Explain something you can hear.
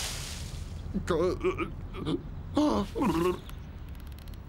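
A man exclaims in a high, strained voice.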